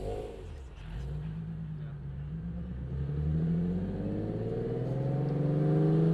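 A car engine revs up, its pitch steadily rising.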